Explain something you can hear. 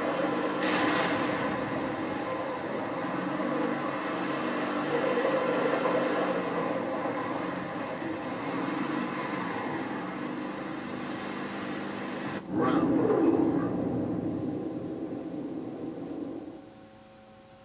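A video game vehicle engine rumbles steadily through a television speaker.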